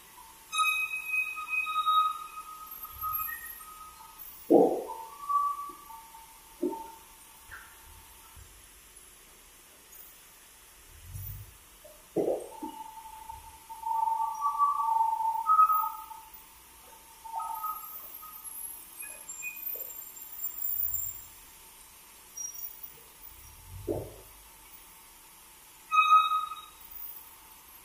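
A sawmill blade whines loudly as it cuts through wood.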